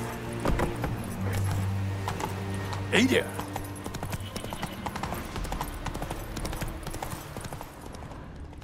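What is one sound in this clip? Horse hooves clop steadily on stone and dirt.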